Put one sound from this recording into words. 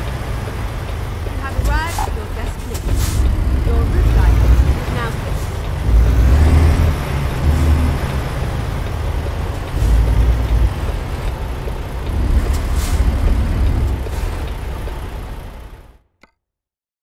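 A truck engine rumbles low and steady while driving.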